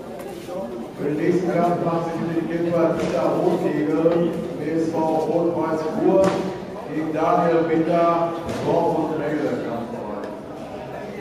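A man speaks loudly and urgently in an echoing hall.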